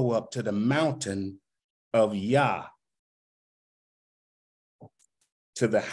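A man speaks calmly and slowly into a microphone, pausing between phrases.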